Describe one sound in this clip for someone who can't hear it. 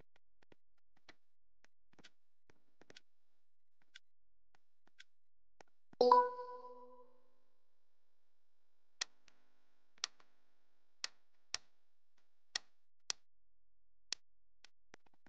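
A game countdown ticks with short beeps.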